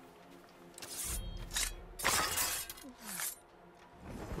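A blade strikes a body with a sharp thud.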